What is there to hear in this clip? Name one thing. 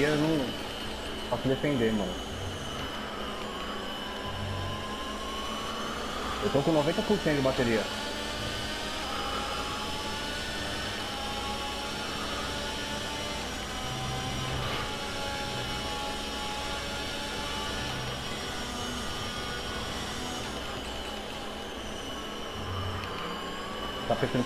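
A racing car engine whines loudly at high revs, rising and dropping in pitch as gears change.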